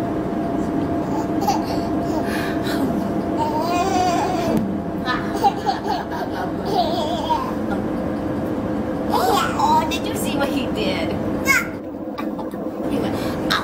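A young child talks and squeals excitedly close by.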